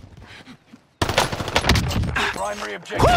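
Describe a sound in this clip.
A rifle fires in rapid shots.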